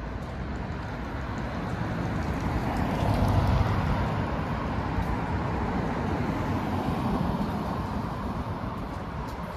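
A car drives past on a city street, swelling and fading.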